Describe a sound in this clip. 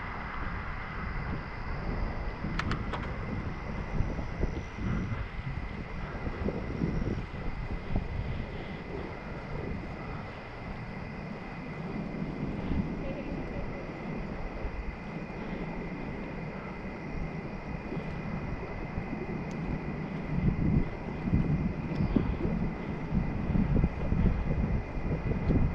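Bicycle tyres roll over a paved path.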